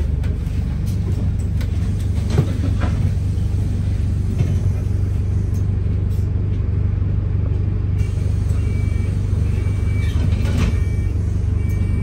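A bus engine hums low and steady inside the moving bus.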